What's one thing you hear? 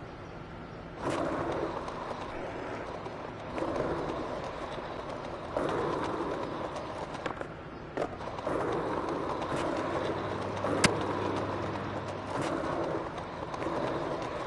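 Skateboard wheels roll over paving stones with a rough rumble.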